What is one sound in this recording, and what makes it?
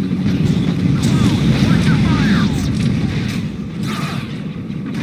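Blaster shots zap and crackle.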